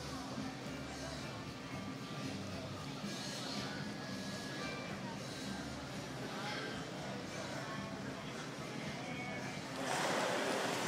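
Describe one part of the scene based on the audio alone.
A crowd of people chatter quietly in the distance.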